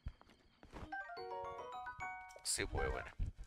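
A short bright chiming tune plays.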